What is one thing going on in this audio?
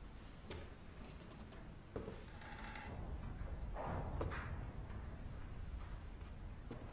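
Slow footsteps thud on a wooden floor.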